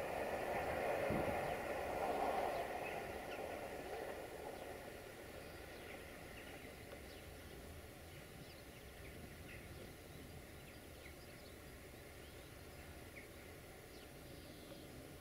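A train rumbles along the rails and fades into the distance.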